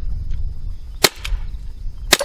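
A handgun fires a sharp shot.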